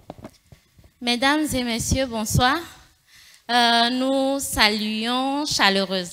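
A woman speaks animatedly into a microphone, heard through a loudspeaker.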